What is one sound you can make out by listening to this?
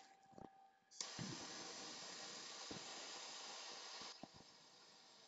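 A gas torch hisses steadily.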